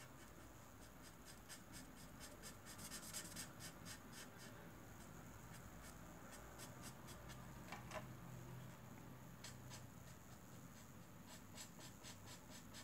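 A marker tip scratches and squeaks softly on paper, close by.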